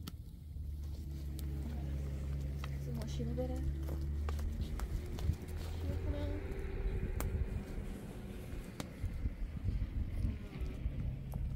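A small wood fire crackles.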